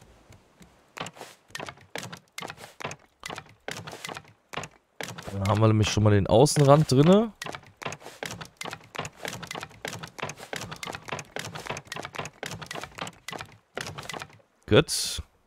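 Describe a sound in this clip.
A hammer knocks on wooden boards in quick repeated blows.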